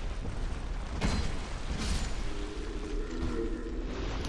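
A sword swishes and strikes with a heavy thud.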